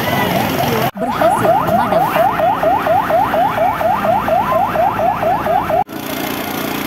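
A fire truck siren yelps rapidly over and over.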